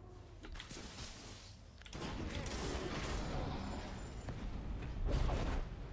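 Fantasy battle sound effects clash and crackle as fighters brawl.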